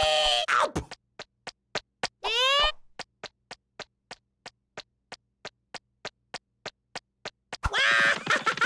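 Tiny footsteps tap quickly and evenly across a hard surface.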